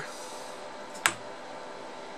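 A screwdriver taps once against metal.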